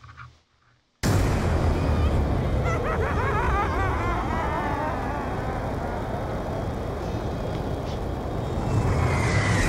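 A deep, steady rumbling noise roars from a game.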